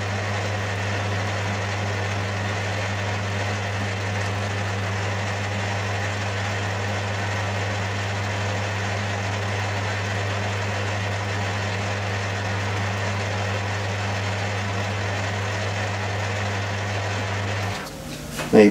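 A lathe motor hums steadily as the chuck spins, then stops.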